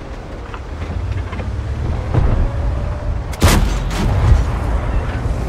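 Shells explode with dull booms.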